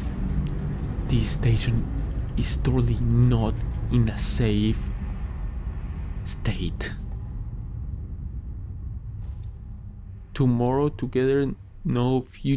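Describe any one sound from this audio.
A man speaks casually into a close microphone.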